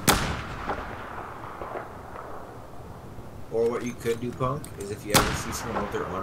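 A sniper rifle fires a loud, sharp shot.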